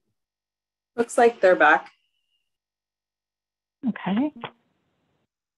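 A second woman speaks briefly through an online call.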